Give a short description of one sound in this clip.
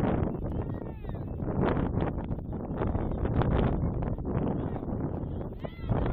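Young women shout to each other on an open field.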